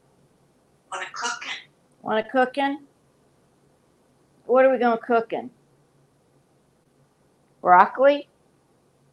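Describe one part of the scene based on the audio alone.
A parrot chatters up close in short bursts, mimicking speech.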